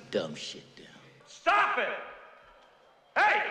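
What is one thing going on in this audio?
A man shouts forcefully.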